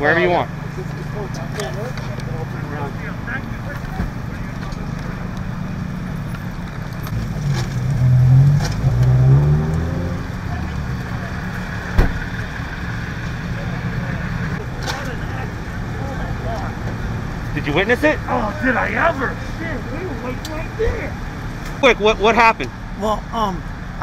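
Fire engines idle with a low steady rumble.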